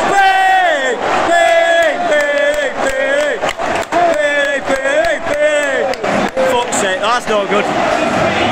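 A large crowd of men sings a chant loudly, close by in a stadium.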